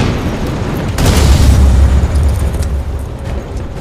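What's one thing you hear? A heavy metal thud lands with a deep boom.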